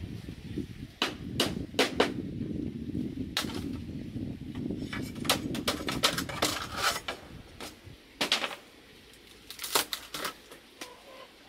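Bamboo knocks and clatters.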